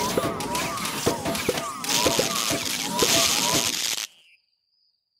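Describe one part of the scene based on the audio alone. Cartoonish game sound effects pop and thud rapidly.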